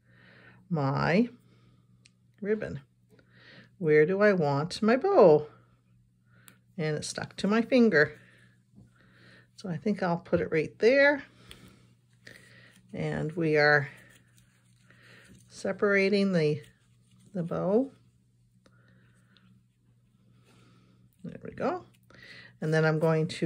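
Card stock rustles softly as it is handled.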